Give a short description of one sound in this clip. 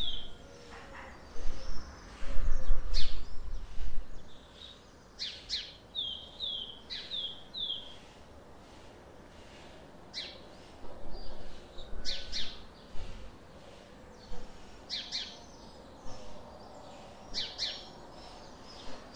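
Birds chirp and tweet nearby.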